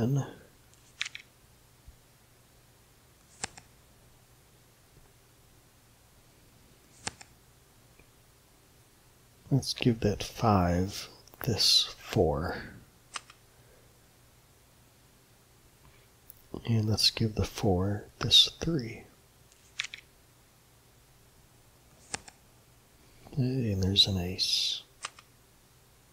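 Soft card-flip clicks sound now and then.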